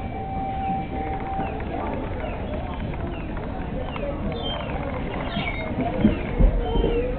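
Birds rustle dry leaves as they walk.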